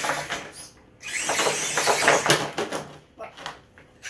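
A toy truck tumbles and clatters against rocks.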